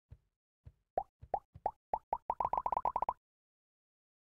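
Coins clink quickly, one after another.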